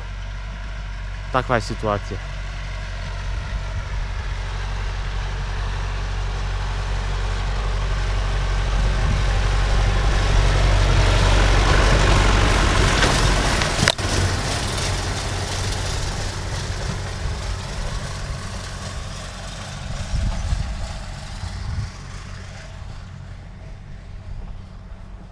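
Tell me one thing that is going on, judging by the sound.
A tractor engine rumbles, growing louder as it passes close and then fading into the distance.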